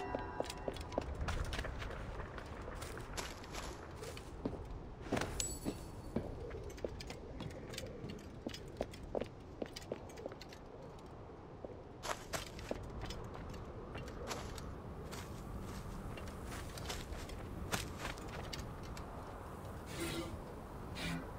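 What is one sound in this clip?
Footsteps crunch on dry sand and gravel.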